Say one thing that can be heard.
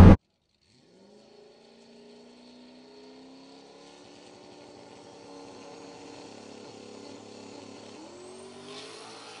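Car engines idle and rev faintly in the distance outdoors.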